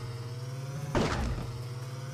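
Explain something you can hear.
A car lands with a thud.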